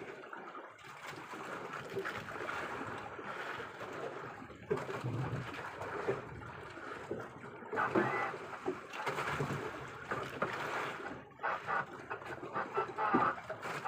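Wind blows across the open water.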